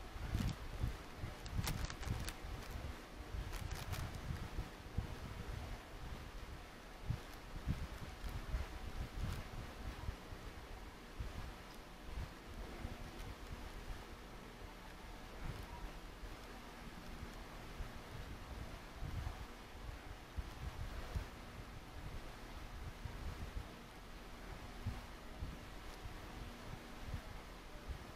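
A man's hands fumble and bump against things close by, with soft thuds and rustles.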